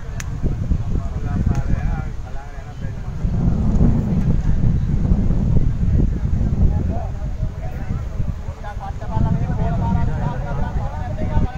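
Men talk casually nearby.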